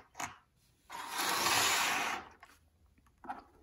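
Fabric rustles up close.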